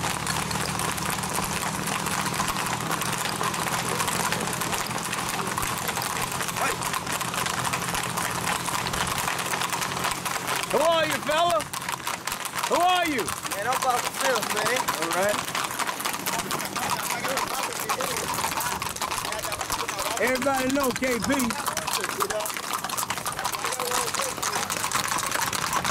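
Hooves of several gaited horses clop on a paved road.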